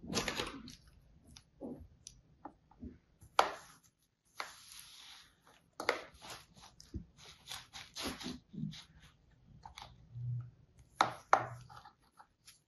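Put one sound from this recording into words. A plastic mould clicks and taps lightly.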